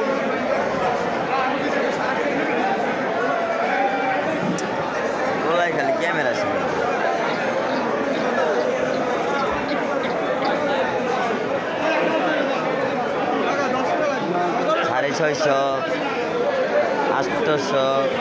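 Many men and women talk at once nearby, loud and overlapping.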